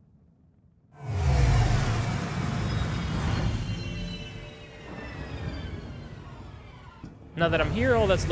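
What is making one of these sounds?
A spacecraft's engines roar loudly, then slowly fade.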